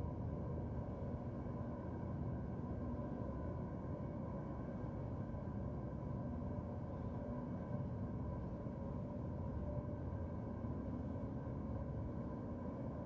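A spaceship's engines hum low and steady.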